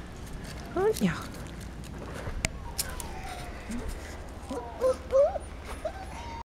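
A puppy whimpers and yelps in high, wavering cries close by.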